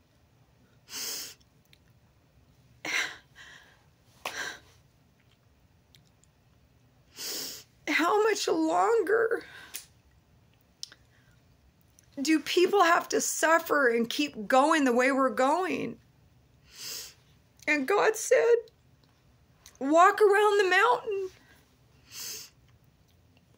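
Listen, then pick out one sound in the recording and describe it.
A middle-aged woman breathes in audibly between phrases.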